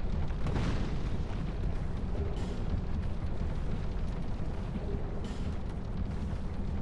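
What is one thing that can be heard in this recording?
Wind rushes past in a low, steady roar.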